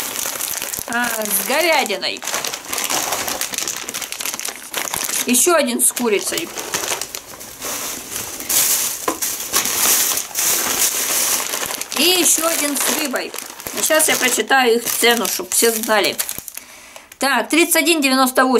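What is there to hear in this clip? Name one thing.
Plastic packaging crinkles and rustles in a woman's hands.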